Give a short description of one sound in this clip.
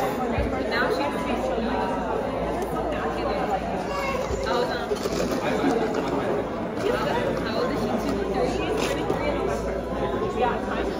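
Many voices chatter around in a busy room.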